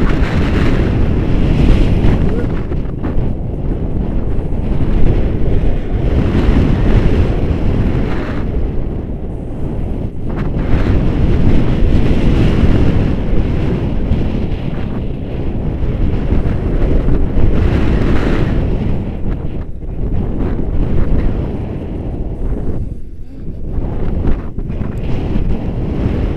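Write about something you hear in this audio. Strong wind buffets a microphone, roaring steadily.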